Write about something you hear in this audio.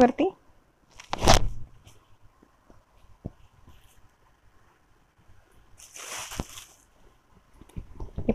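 Silk fabric rustles as it is unfolded and handled.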